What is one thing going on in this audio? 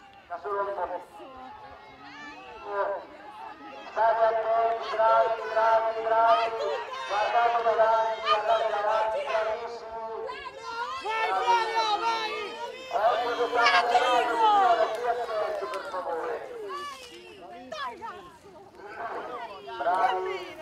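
A crowd of men and women cheer and shout encouragement outdoors.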